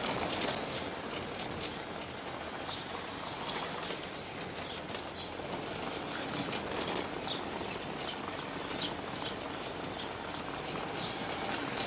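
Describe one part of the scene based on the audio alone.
A car rumbles steadily over a cobblestone road.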